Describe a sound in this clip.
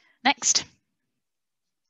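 A young woman speaks briefly through an online call.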